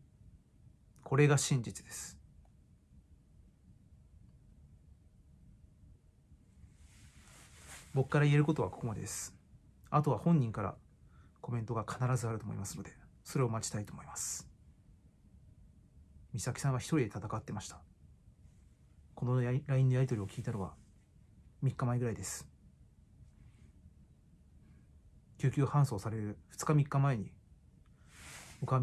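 A young man speaks close to a microphone in short, calm bursts with pauses.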